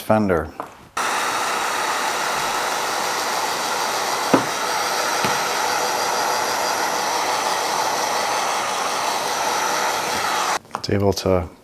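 A heat gun blows with a steady roar.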